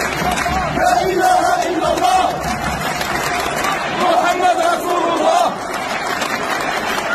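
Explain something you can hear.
A large crowd chants loudly in unison, echoing around a huge stadium.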